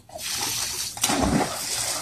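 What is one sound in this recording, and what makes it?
A dog splashes while swimming.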